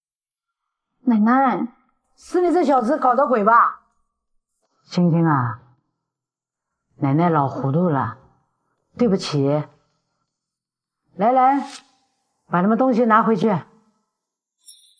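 An elderly woman speaks firmly, close to the microphone.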